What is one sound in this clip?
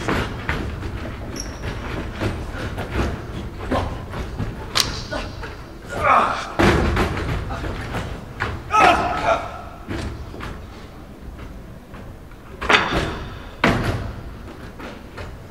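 Footsteps thump on a wooden stage.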